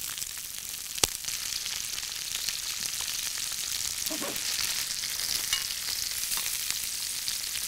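Vegetables sizzle and crackle in hot oil in a pan.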